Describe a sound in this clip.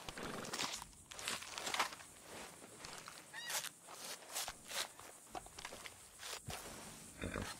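Wet flesh squelches and tears as a carcass is skinned.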